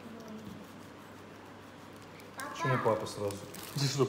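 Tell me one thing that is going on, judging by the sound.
A knife cuts through a thick fruit rind on a cutting board.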